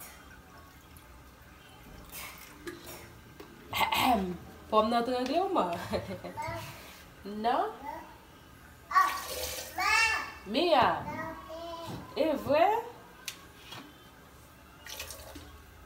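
Water pours from a plastic bottle into a blender jug.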